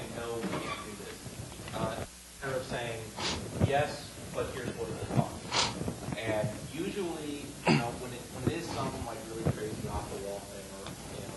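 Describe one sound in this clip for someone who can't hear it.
A middle-aged man speaks steadily into a microphone.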